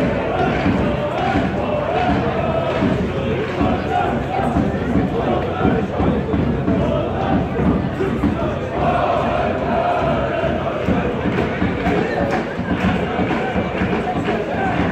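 A stadium crowd chants and sings loudly and steadily.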